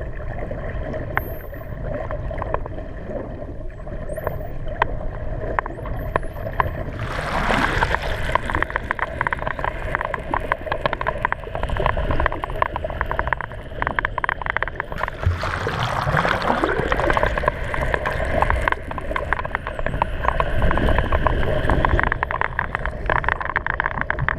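Dolphins whistle underwater.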